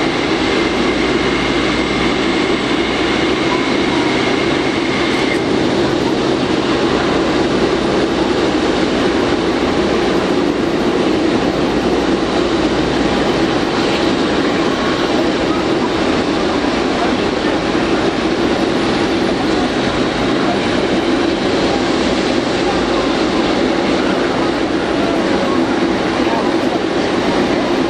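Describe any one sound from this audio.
Jet engines roar loudly and steadily as a large airliner taxis close by.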